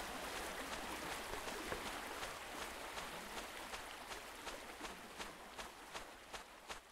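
Quick footsteps patter along a path.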